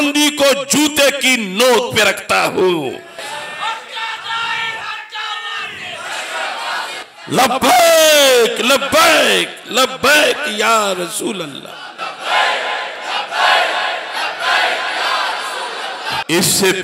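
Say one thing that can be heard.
A man preaches passionately into a microphone, his voice rising and falling.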